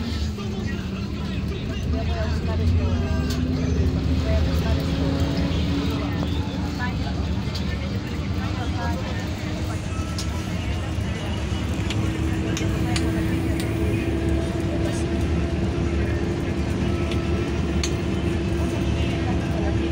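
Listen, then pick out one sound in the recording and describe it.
Passing traffic rushes by outside.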